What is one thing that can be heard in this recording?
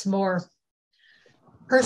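An elderly woman speaks quietly over an online call.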